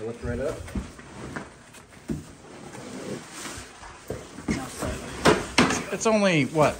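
A large cardboard box scrapes and thumps as it is pulled off.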